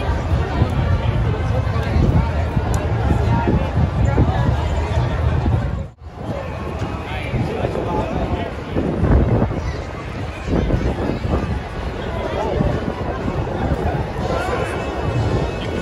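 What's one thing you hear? A large crowd chatters all around outdoors.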